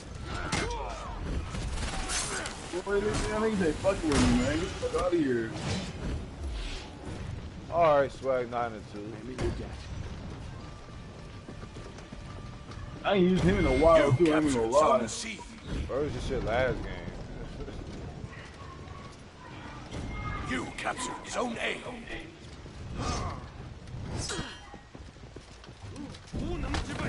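Metal blades clash and ring in a fight.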